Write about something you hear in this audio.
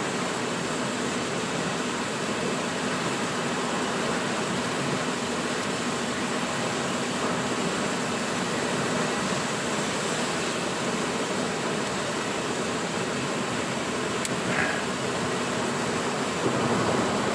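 A car's tyres hiss on a wet road.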